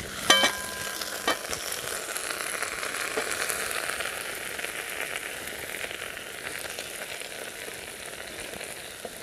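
Outdoors, a fire crackles softly.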